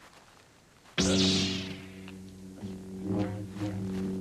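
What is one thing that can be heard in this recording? A handheld gadget gives off a steady, buzzing electronic tone.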